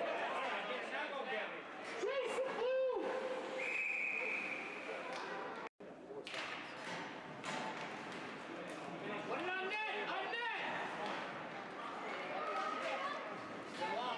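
The game echoes through a large indoor rink.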